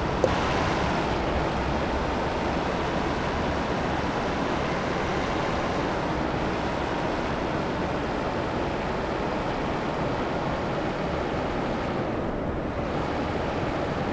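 A game's diesel semi truck engine rumbles while manoeuvring at low speed.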